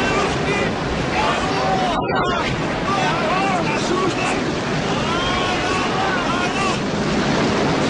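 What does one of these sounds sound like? Men shout over the storm.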